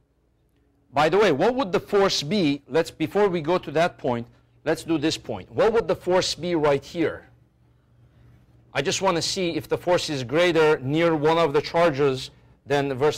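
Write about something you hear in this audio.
A man speaks clearly and steadily into a microphone, lecturing.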